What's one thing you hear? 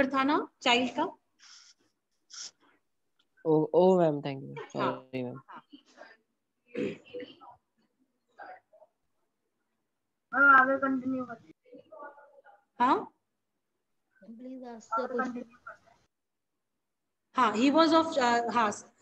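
A woman speaks calmly, heard through an online call.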